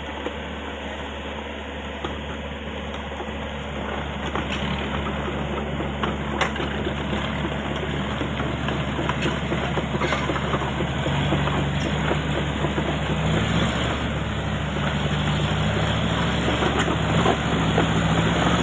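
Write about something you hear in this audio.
A small pickup truck's engine strains uphill under load.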